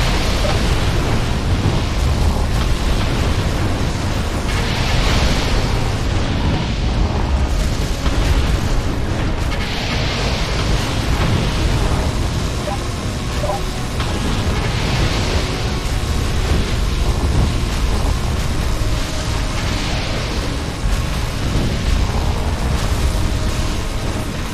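Laser guns zap and crackle in rapid bursts.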